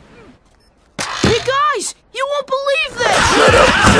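A young boy speaks cheerfully.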